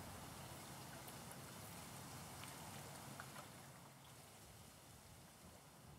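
Clear water trickles over rocks.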